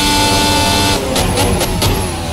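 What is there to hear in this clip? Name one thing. A racing car engine drops in pitch as the driver brakes.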